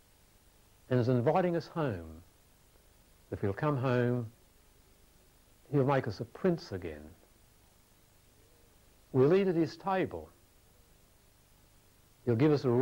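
A man speaks through a microphone in short, expressive phrases with pauses between them.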